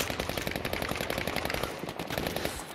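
A machine gun fires in a rapid burst.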